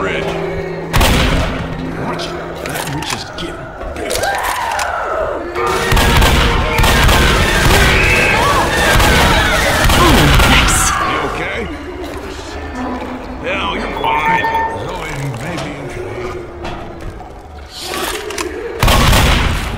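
A shotgun fires loudly, with a heavy boom.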